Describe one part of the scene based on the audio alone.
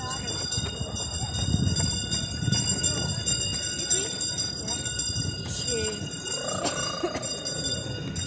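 Sleigh runners hiss and rumble over snow.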